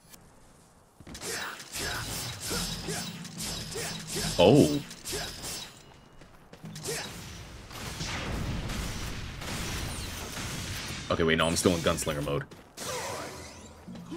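Swords slash and clang in rapid combat.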